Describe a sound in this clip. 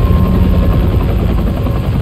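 A helicopter's rotor whirs overhead.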